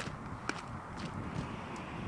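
Boots crunch on gravel.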